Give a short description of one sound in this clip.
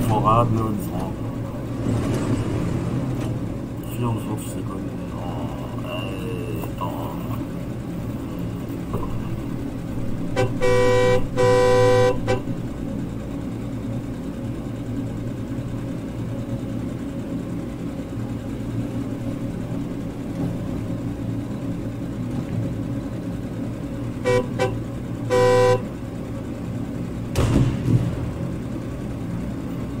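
A truck engine rumbles steadily at idle.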